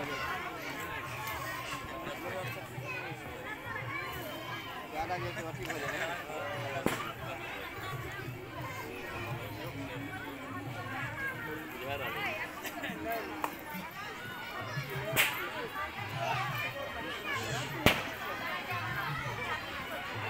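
A crowd of men and women talk and call out nearby outdoors.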